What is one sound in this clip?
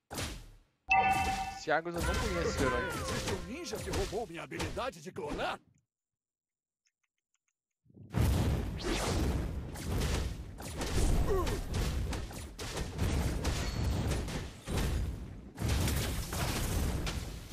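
Game battle effects clash and burst.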